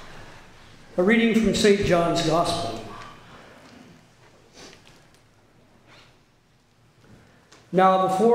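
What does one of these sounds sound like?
An elderly man speaks steadily through a microphone in a large room.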